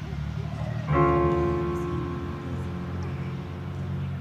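A piano plays sustained chords.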